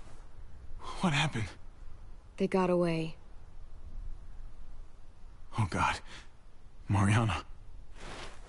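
A young woman talks into a microphone close by.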